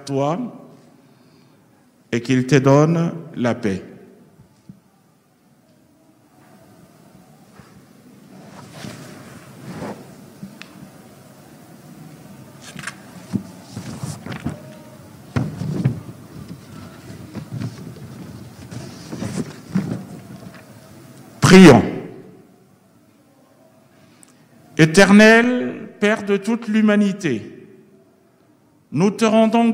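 A man speaks into a microphone, heard through loudspeakers in a large echoing hall.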